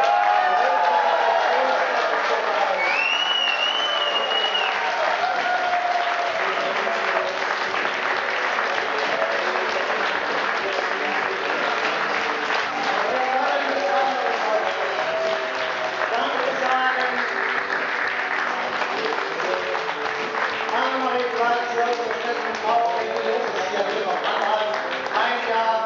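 A crowd applauds loudly in a large hall.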